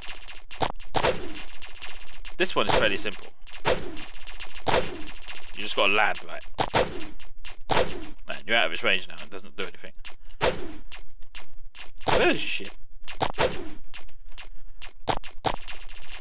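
Game turrets fire rapid electronic shots.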